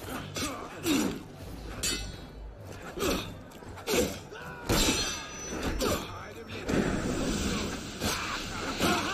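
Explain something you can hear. Swords clash and ring in quick blows.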